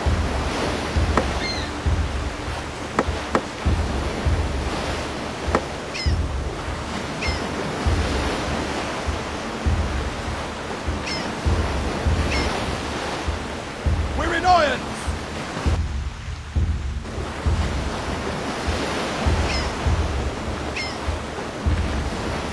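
Ocean waves wash and roll steadily.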